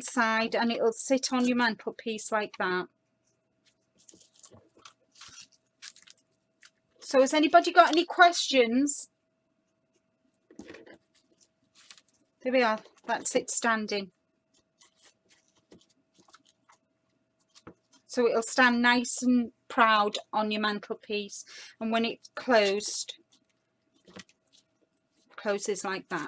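Stiff paper rustles and creases as hands fold it.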